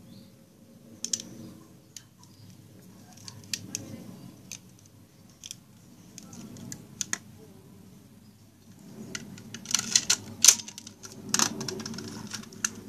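Plastic parts of a toy click and clatter as hands handle them.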